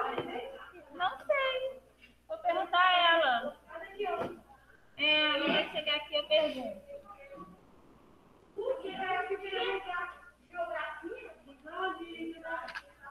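A woman speaks calmly through an online call, explaining at length.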